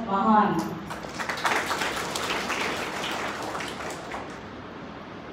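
A small audience applauds.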